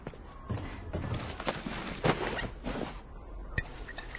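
Cloth and gear rustle and clink.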